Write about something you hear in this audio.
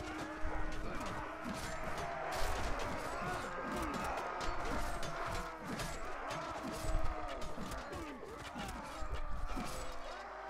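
Swords and maces clash against shields in a crowded melee.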